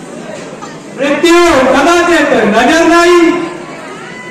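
A man declaims loudly in a drawn-out, singing voice through a loudspeaker.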